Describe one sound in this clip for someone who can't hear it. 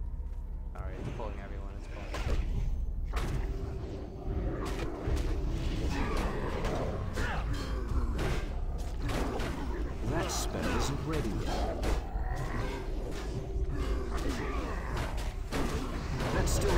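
Magic spells crackle and burst during a fantasy game battle.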